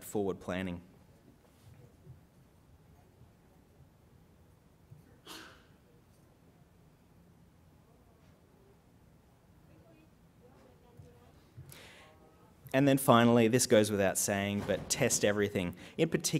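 A man speaks calmly into a microphone, pausing at length between phrases.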